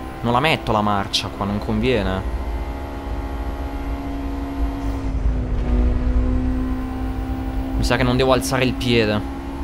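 A racing car engine hums steadily, rising and falling in pitch.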